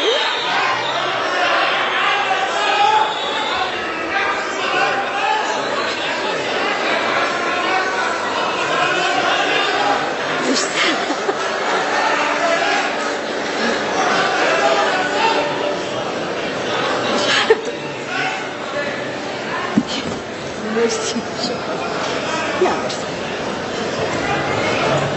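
A woman sings into a microphone over a loudspeaker in a large hall.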